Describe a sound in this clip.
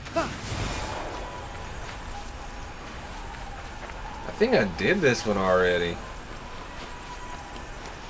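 Footsteps run quickly over dry, gritty ground.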